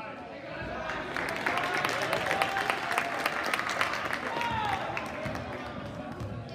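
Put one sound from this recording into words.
Spectators cheer and shout from the stands.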